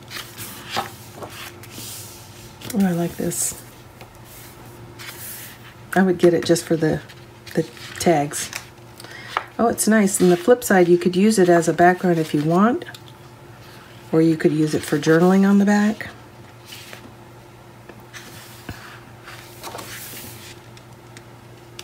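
Paper sheets rustle and slide as they are turned over.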